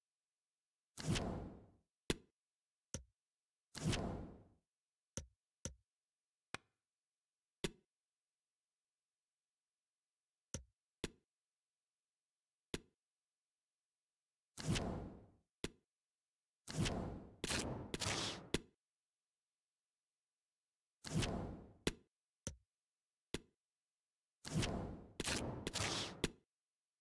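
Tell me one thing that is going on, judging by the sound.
Short game menu clicks and swooshes sound now and then as menus change.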